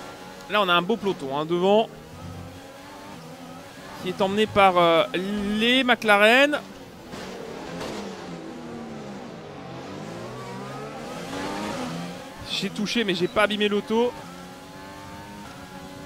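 A racing car engine whines loudly, revving up and dropping in pitch with each gear change.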